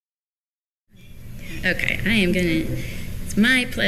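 A young woman speaks calmly into a microphone, heard through a loudspeaker.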